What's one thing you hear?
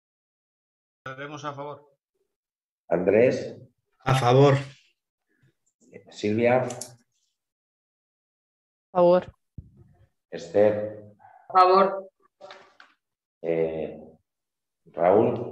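A man speaks calmly through an online call, in short phrases with pauses.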